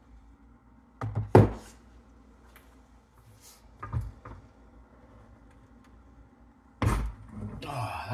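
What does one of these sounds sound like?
Metal parts clunk and knock as they are handled.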